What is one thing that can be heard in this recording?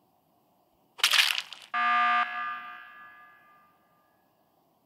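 A video game emergency alarm blares with a ringing, fading electronic tone.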